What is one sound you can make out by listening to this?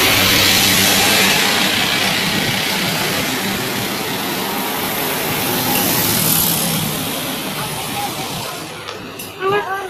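Street traffic hums and rumbles nearby.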